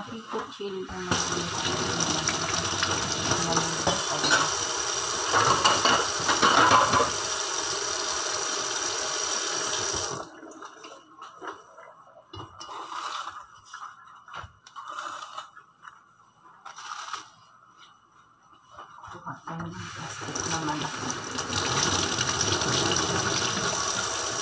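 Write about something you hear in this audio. Water pours from a tap and splashes into a metal sink.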